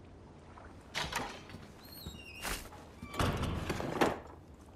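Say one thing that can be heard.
Footsteps thud and creak on a wooden floor.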